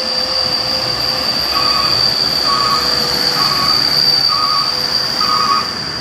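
A motorcycle engine buzzes as it approaches.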